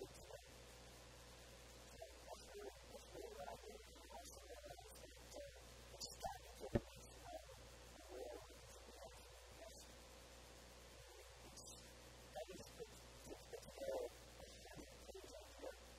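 A man talks with animation through a clip-on microphone.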